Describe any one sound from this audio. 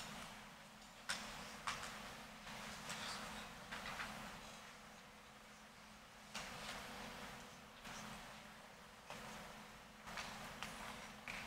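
Paper rustles and crinkles softly at a lectern.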